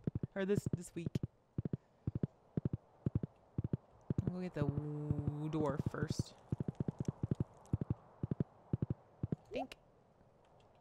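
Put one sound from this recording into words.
Hooves clop quickly and steadily on the ground.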